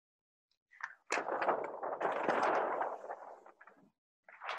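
A large paper sheet rustles as it is flipped over.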